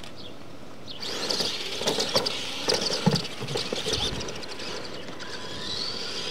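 A small electric motor whines as a toy car speeds along.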